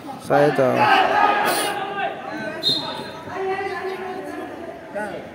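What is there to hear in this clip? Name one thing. A crowd of young men shouts and cheers in an echoing hall.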